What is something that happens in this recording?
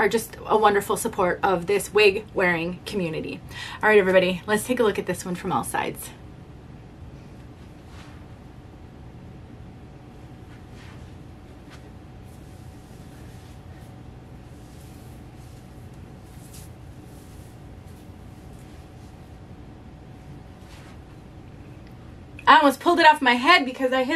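A middle-aged woman speaks calmly and warmly close to a microphone.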